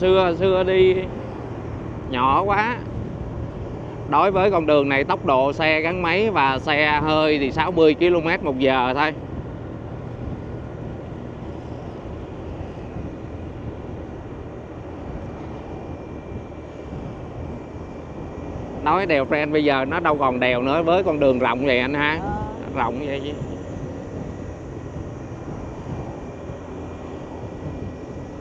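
Tyres roll steadily along a paved road.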